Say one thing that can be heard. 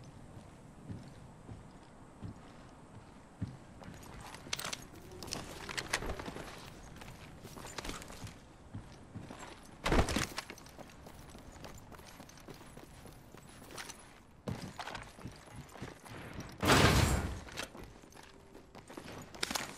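Footsteps patter quickly over ground and metal.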